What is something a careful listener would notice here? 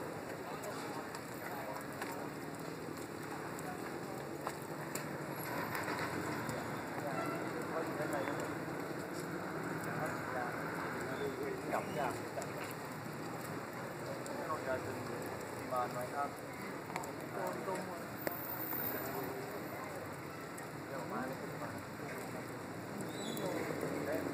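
Electrical sparks crackle and pop on a power line.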